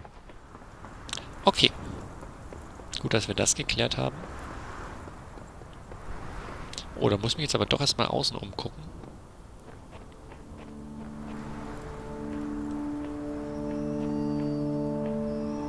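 Footsteps crunch quickly over snow and stone.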